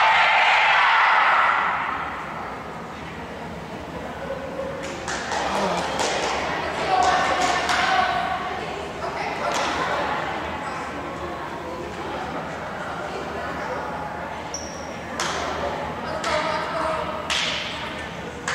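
A crowd of players and spectators cheers and chatters in a large echoing gym.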